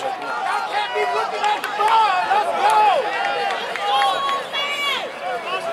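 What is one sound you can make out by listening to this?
A crowd of spectators shouts and cheers loudly outdoors nearby.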